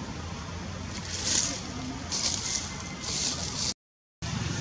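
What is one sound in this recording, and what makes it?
Leaves rustle close by in short bursts.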